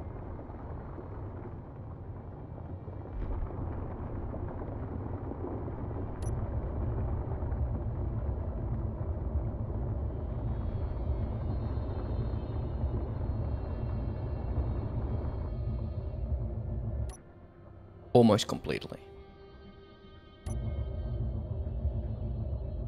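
A drill grinds through rock with a deep, steady rumble.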